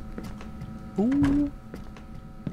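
A man makes a short vocal exclamation close to a microphone.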